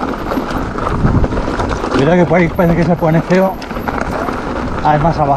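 Bicycle tyres crunch and rattle over loose rocks.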